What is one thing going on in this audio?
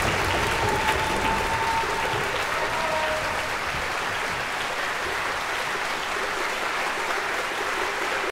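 An audience applauds steadily in a large echoing hall.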